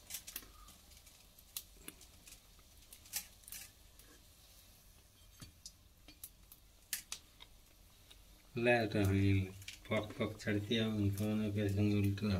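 A metal skimmer scrapes and taps against a metal pan.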